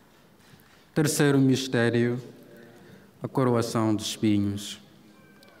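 A man chants through a microphone.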